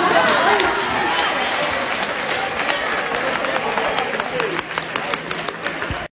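A crowd of young people cheers and shouts loudly.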